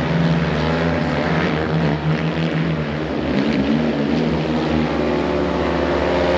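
Several motorcycle engines roar and buzz loudly as the bikes race around an outdoor track.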